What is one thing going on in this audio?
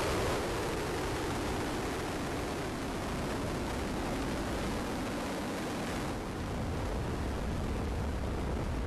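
A rocket engine roars steadily with a deep, crackling rumble.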